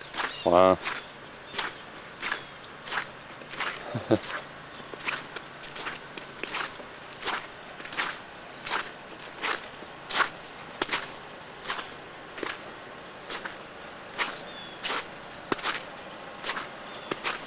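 Footsteps crunch through deep, icy snow.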